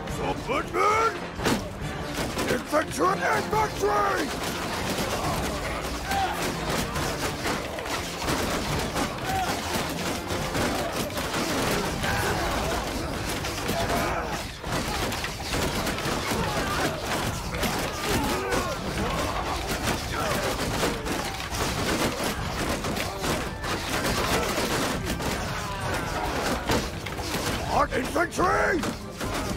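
A large crowd of soldiers shouts and roars in battle throughout.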